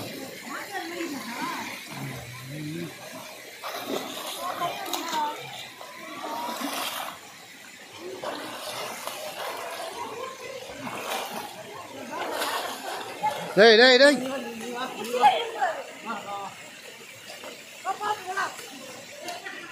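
Shallow water flows and ripples over stone steps.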